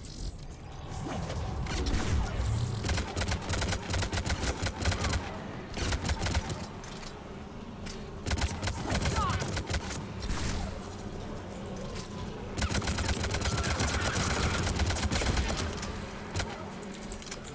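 Gunfire crackles rapidly in bursts.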